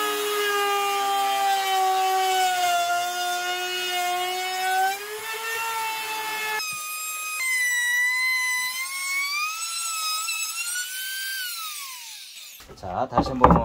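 A power router whines loudly as it trims the edge of a wooden board.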